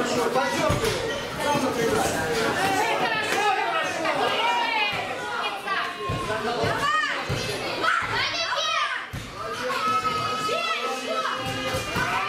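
A crowd of children and adults shouts and cheers.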